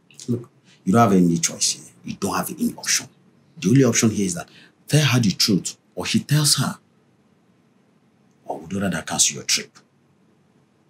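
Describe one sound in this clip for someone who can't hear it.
A man speaks with animation close by.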